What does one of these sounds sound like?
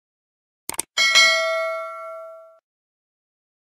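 A bell chimes and rings out.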